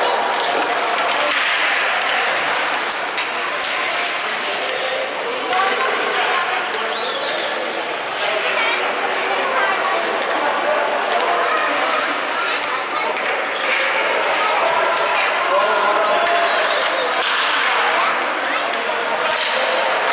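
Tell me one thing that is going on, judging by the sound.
A crowd of spectators chatters and cheers in a large echoing arena.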